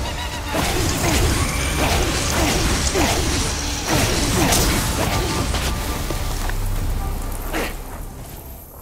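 Explosions boom and crackle as energy blasts strike a flying target.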